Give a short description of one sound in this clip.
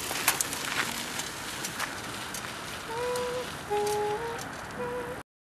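A bicycle rolls over pavement outdoors.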